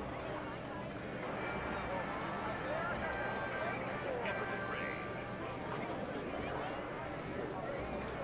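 Slot machines chime and jingle.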